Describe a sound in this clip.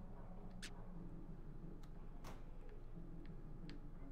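A soft click sounds as a menu selection changes.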